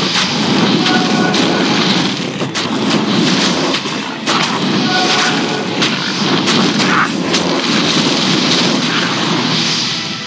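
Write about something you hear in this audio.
Weapons clash and bones clatter in a fight.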